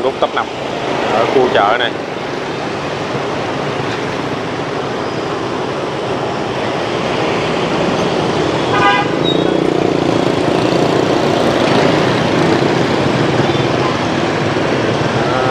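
Motorbike engines hum and buzz steadily as heavy traffic flows past outdoors.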